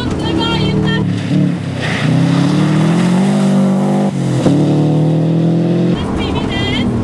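A rally car engine revs loudly as the car speeds past.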